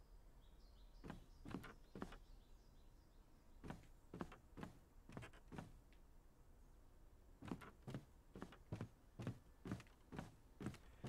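Footsteps thud steadily on wooden steps.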